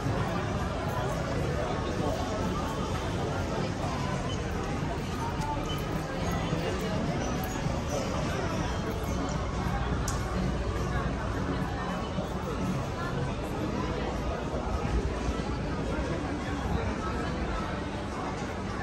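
People chatter in the distance on a busy street.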